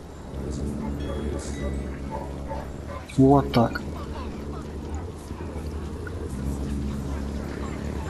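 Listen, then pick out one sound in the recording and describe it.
Footsteps run and splash through shallow water.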